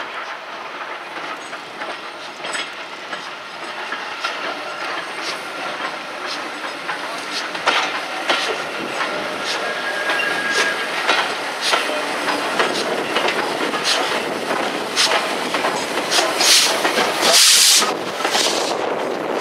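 A steam locomotive chuffs as it pulls into the station, growing louder as it approaches.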